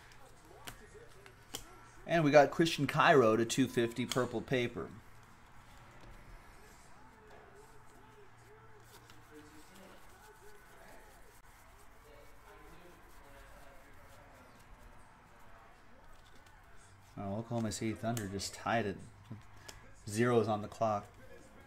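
Trading cards slide and flick against each other in a hand.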